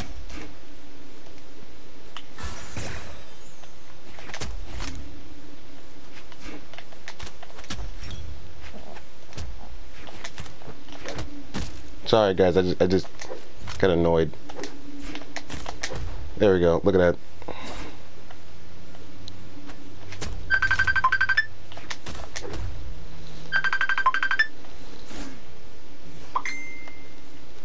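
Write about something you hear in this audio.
Quick cartoon punches and sword swipes smack and whoosh in a fast fight.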